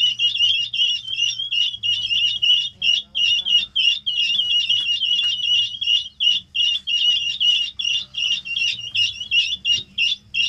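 Many chicks peep loudly and constantly, close by.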